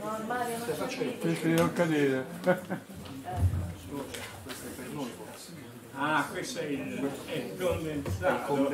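An elderly man speaks calmly into a microphone, heard through a loudspeaker in a room.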